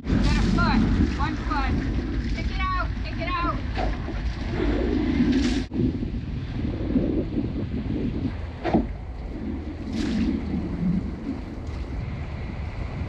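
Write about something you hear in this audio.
A boat engine rumbles steadily.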